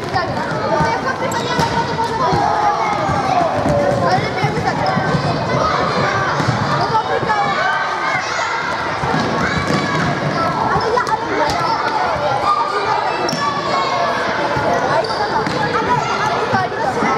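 Children shout and cheer in a large echoing hall.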